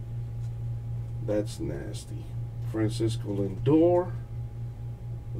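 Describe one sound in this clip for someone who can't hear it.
Trading cards slide and rustle between hands.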